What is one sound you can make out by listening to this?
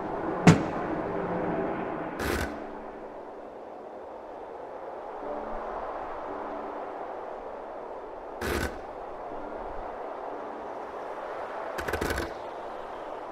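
Wooden planks knock and clatter as they shift.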